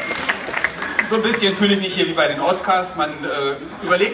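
A man speaks loudly through a loudspeaker, echoing.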